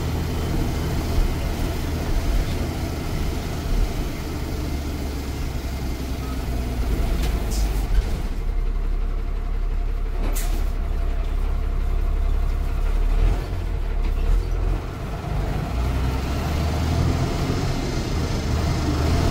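A bus engine rumbles steadily as the bus drives along a road.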